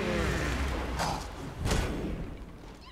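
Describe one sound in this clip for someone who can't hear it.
Magic blasts burst with sharp whooshing impacts.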